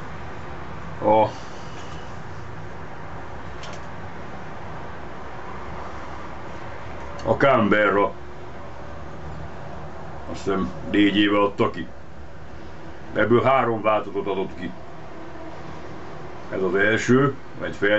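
An older man speaks calmly close by.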